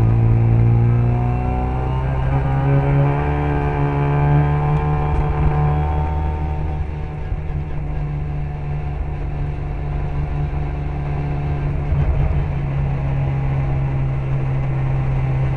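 Wind buffets loudly past the car.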